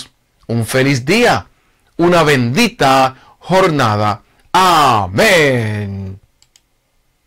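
A middle-aged man speaks calmly and warmly close to a microphone.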